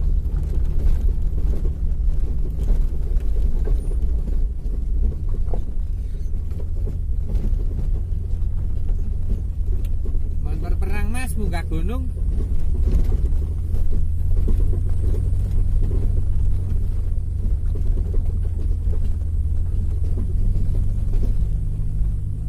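Tyres crunch and rattle over a rough gravel road.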